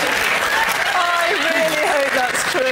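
A man speaks into a microphone over the laughter.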